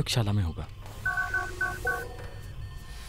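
An electronic console beeps in quick tones.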